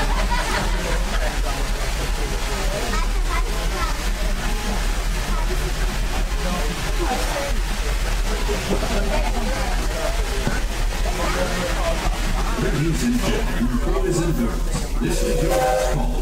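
Several passengers chatter nearby.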